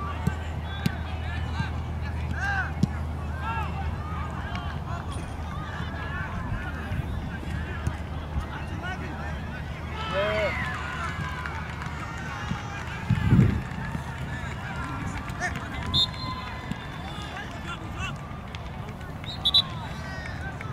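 Players shout and call out across an open field, far off.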